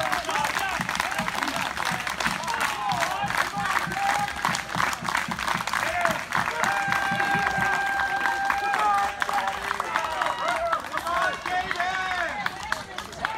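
A crowd of men and women cheers and shouts.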